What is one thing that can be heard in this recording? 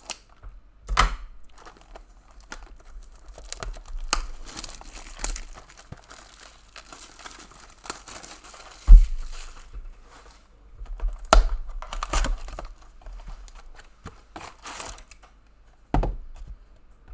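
A cardboard box knocks and slides on a table.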